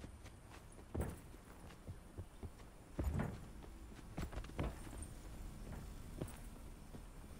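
Footsteps thud on a hard rooftop.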